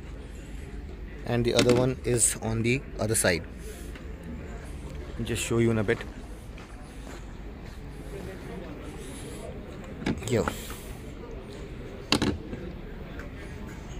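A small plastic flap clicks open and shut.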